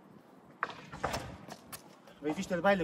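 A skateboard clacks and knocks on concrete.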